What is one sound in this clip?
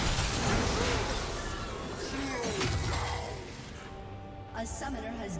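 Game spell effects crash and whoosh during a fight.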